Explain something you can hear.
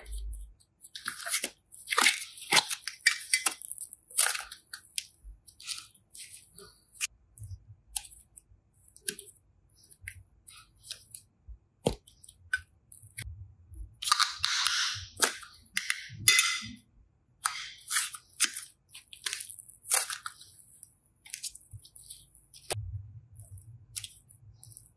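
Soft clay squishes and crackles between fingers.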